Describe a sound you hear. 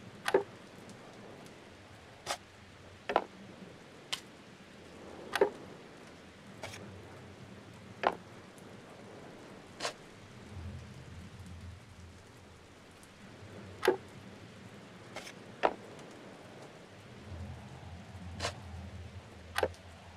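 Puzzle pieces click sharply as they snap into place.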